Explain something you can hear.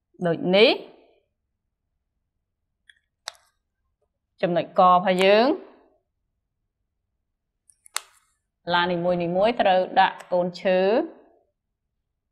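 A young woman speaks calmly in short phrases.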